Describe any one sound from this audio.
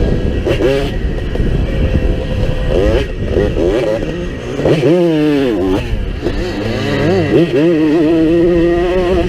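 A motorcycle engine revs hard and changes pitch as it rides.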